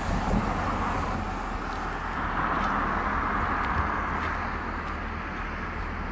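A car drives along a road nearby, its tyre noise swelling and fading.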